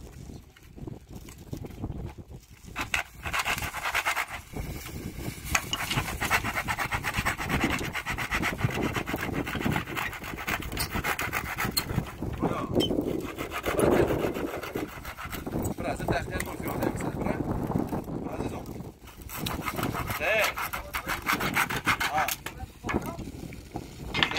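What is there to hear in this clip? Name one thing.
A knife scrapes and shaves along a wooden board.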